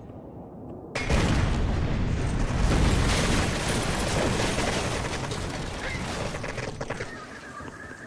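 A large explosion booms and rumbles away.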